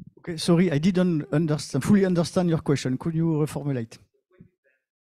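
A man speaks through a microphone in a large room.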